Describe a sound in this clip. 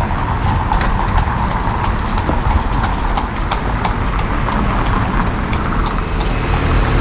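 Horse hooves clop on pavement.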